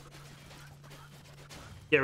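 A sword swishes through the air in a short sweep.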